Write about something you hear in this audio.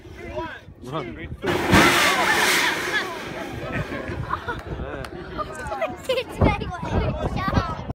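A crowd of people outdoors cheers and talks with excitement.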